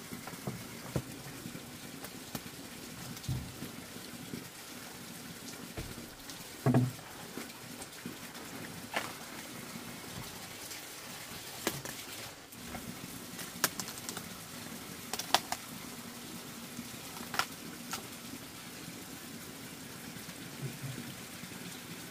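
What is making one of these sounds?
Cabbage leaves rustle and crackle as they are handled.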